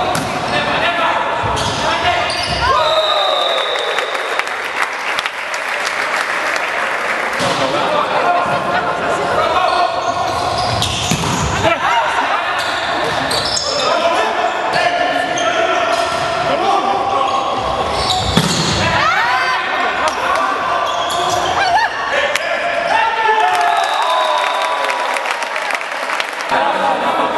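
Young men shout to each other across the court.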